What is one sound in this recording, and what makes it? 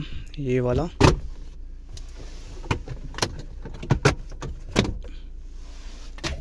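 Plastic trim knocks and clicks under a hand.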